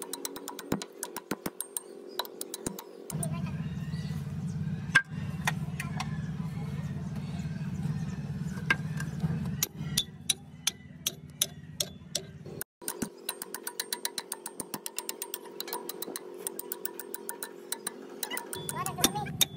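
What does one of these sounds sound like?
A hammer strikes metal in sharp, ringing blows.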